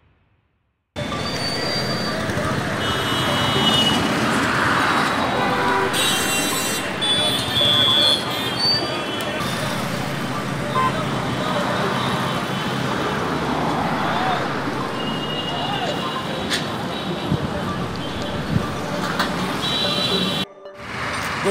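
A busy crowd murmurs and bustles outdoors.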